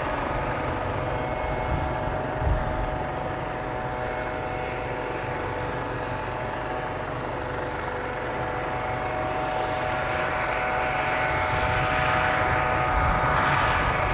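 Wind blows and buffets outdoors.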